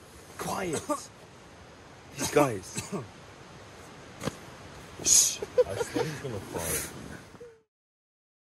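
A young man whispers close by.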